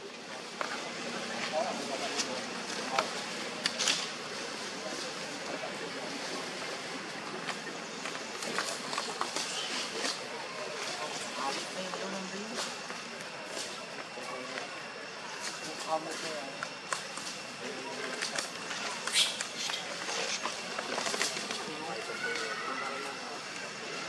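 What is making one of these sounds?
Dry leaves rustle and crackle as monkeys scamper about.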